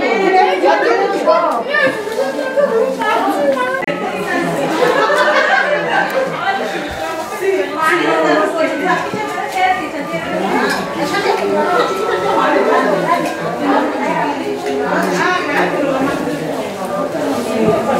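Several women talk and chatter over one another close by.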